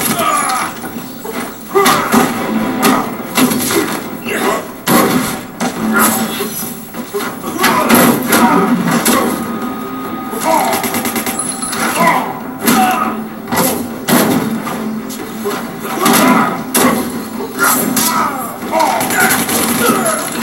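Punches and kicks land with sharp thuds from a fighting game through a television speaker.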